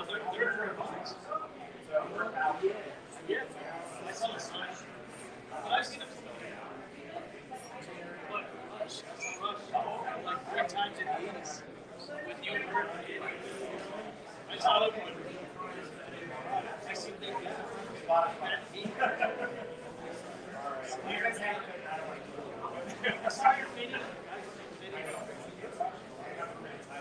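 A crowd of men and women chatter and talk over one another nearby.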